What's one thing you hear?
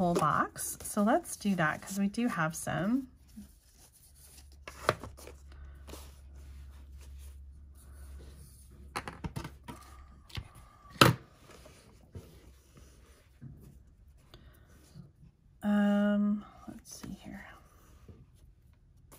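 Paper and card rustle softly as hands handle a small box.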